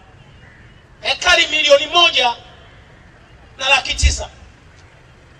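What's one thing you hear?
A man speaks forcefully into a microphone over loudspeakers outdoors.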